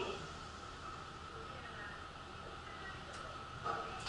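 Metal elevator doors slide open.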